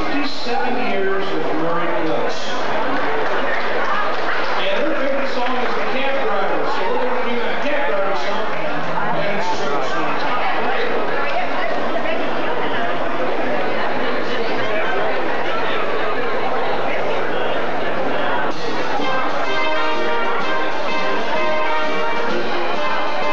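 A big band plays loudly in a large hall.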